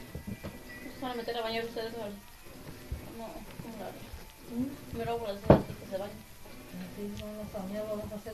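A young woman talks in a playful voice close by.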